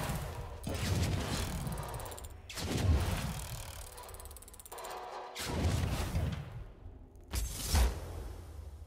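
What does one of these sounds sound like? A shimmering magical whoosh swells up again and again as a glowing chest upgrades.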